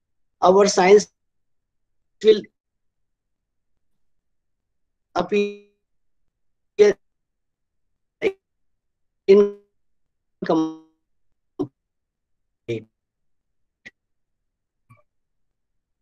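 A man speaks in short, halting phrases over an online call.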